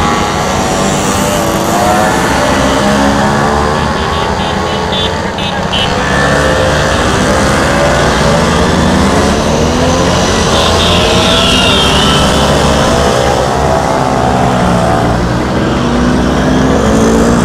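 Scooter engines buzz and putter as a group rides past close by.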